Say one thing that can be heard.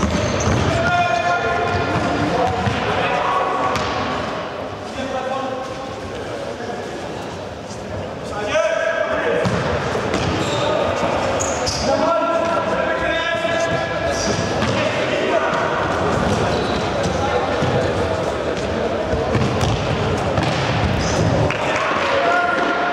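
Young men shout across the court.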